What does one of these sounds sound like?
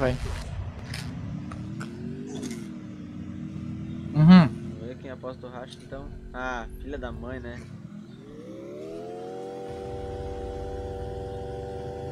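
A motorbike engine hums and revs in a game.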